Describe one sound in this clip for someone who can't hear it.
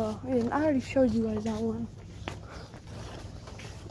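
A foil balloon crinkles as a hand grabs it.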